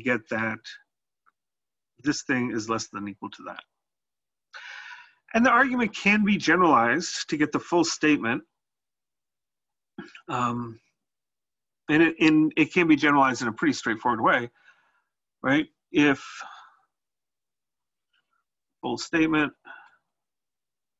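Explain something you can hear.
A man speaks calmly into a close microphone, explaining in bursts with pauses.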